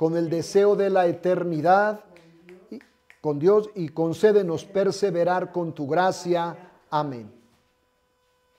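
An elderly man speaks steadily into a close microphone.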